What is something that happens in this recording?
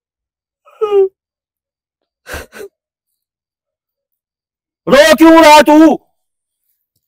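An elderly man cries out loudly in a wailing voice, close by.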